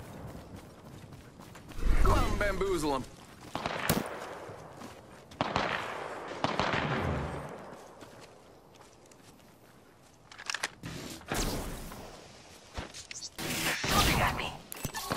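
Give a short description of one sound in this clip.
Footsteps thud quickly across grass.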